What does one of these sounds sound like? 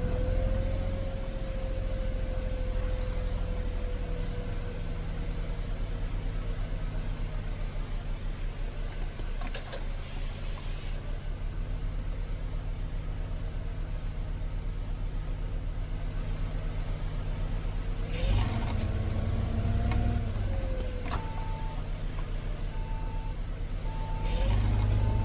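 A bus engine hums and rumbles steadily.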